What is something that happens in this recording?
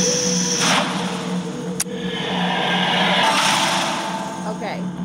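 A magical portal hums and swells with a shimmering whoosh.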